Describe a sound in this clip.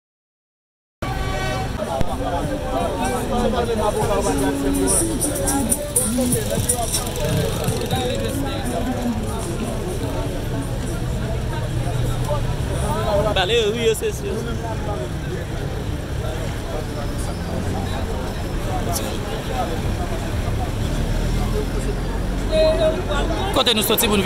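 A crowd of men talk over one another outdoors, close by.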